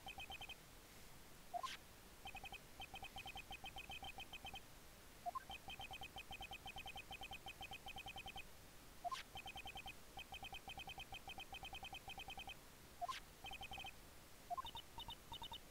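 Short electronic blips tick rapidly as a video game's dialogue text prints out.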